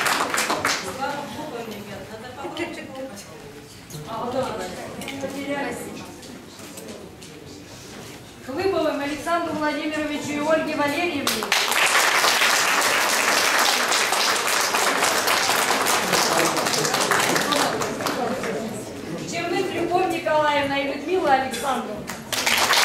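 A woman speaks through a microphone.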